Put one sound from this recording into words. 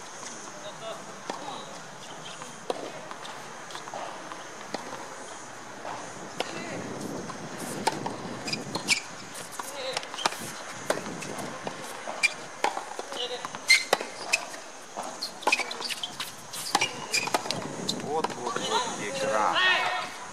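Tennis balls are struck with rackets, with sharp pops.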